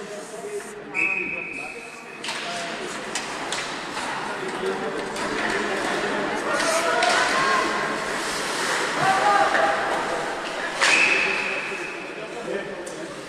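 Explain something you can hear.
A referee's whistle blows shrilly, echoing in a large rink.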